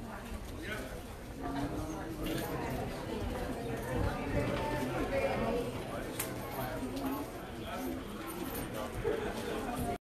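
A crowd of men and women chatter all around in a large room.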